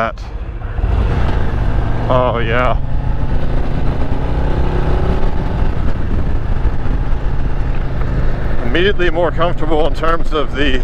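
Wind buffets loudly as the motorcycle rides along the road.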